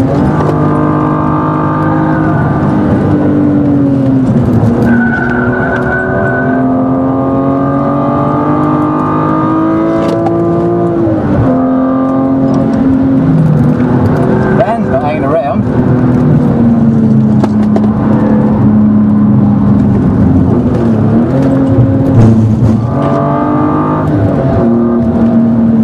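A car engine roars close by, rising and falling in pitch as it shifts gears.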